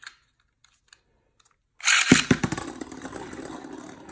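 A spinning top is launched into a plastic dish with a sharp burst.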